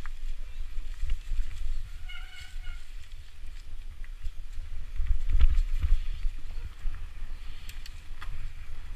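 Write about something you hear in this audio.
Mountain bike tyres crunch and rattle over a leafy dirt trail.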